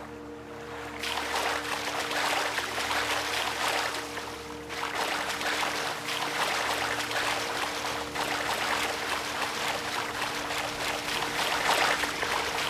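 Water splashes with each step of someone wading through it.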